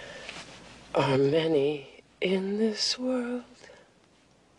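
A woman speaks in a shaky, upset voice close by.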